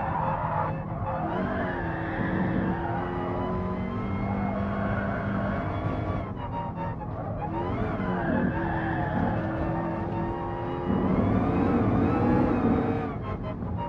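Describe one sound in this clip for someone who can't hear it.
A racing car engine roars, revving up and down as the gears shift.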